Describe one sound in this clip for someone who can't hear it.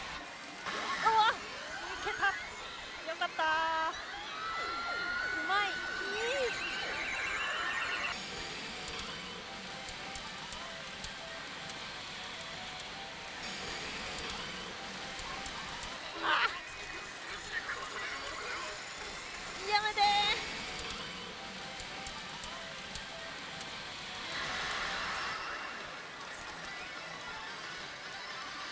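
A pachinko machine plays loud electronic music and sound effects.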